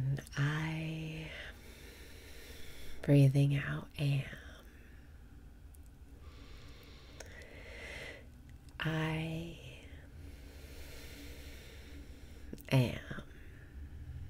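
A young woman speaks softly in short phrases close to the microphone, with pauses between them.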